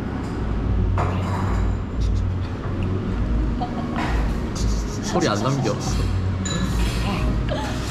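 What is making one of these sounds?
A young man talks and laughs.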